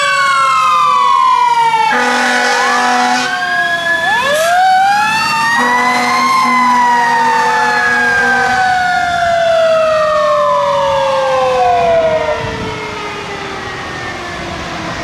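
A fire truck siren wails loudly, rising and falling as the truck passes and drives away.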